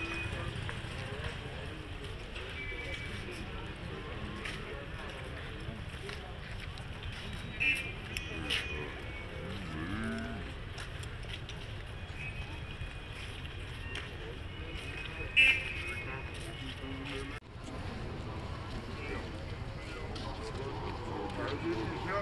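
Many footsteps shuffle along a street outdoors.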